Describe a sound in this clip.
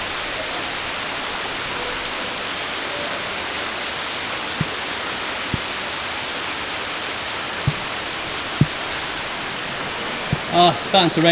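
Rain patters on a pond.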